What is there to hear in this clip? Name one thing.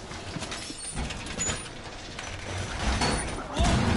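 Metal clanks and rattles as a heavy panel is fixed in place.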